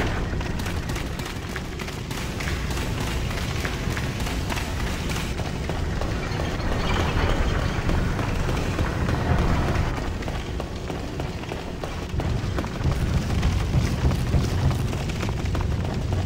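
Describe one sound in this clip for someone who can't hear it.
Footsteps thud on stone and wooden floors.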